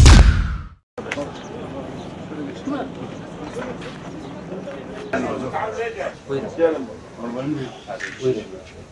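Several men talk and murmur nearby outdoors.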